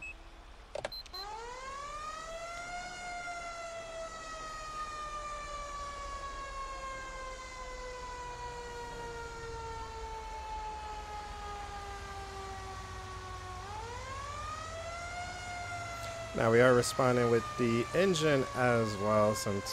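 A siren wails, rising quickly and then slowly falling in long sweeps.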